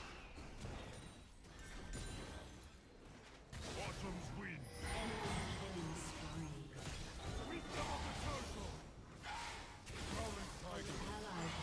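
Game spell effects whoosh and clash.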